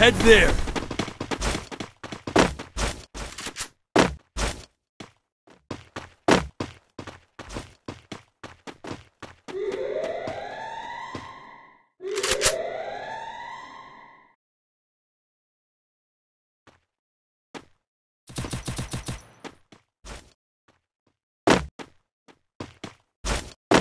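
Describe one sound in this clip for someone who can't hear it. Running footsteps patter on a hard floor.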